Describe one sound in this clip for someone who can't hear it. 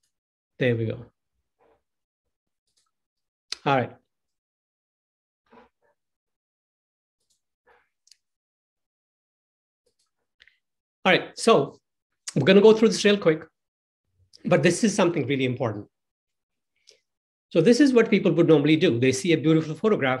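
A young man speaks calmly into a microphone, heard as over an online call.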